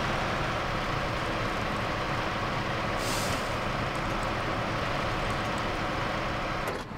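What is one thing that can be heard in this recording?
A heavy truck engine roars and labours steadily.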